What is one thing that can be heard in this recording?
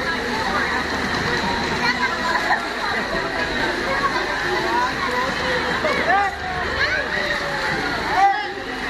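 Water splashes and laps steadily.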